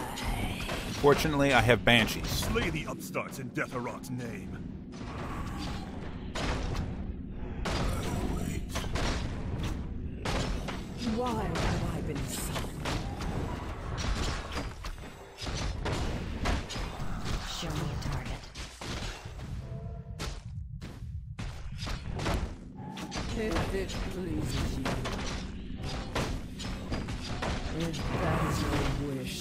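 Game units clash in battle with spell effects and hits.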